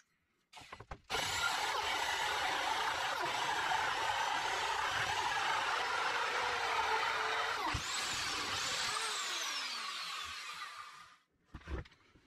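A drill whirs loudly as a hole saw cuts into wood.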